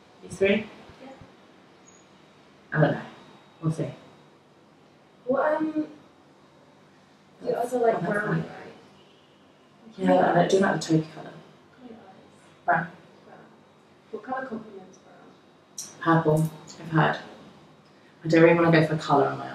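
A young woman reads out and talks nearby, pausing often.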